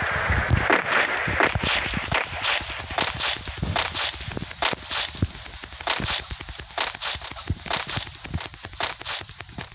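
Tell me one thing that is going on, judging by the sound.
Rain patters steadily all around.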